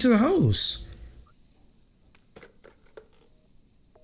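A telephone handset is lifted with a plastic clatter.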